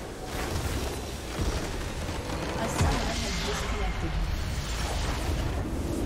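A structure explodes with a deep rumbling crash.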